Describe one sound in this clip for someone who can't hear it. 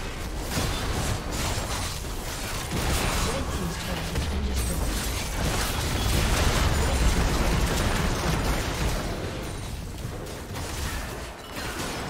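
Magic spells crackle and blast in a fast, busy fight.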